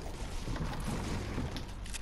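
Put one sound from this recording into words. A pickaxe strikes a wooden cabinet with a hollow thud.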